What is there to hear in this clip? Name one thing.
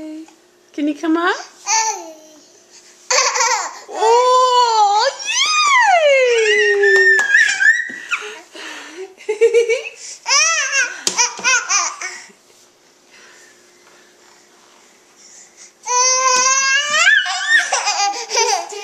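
A toddler babbles and squeals loudly close by.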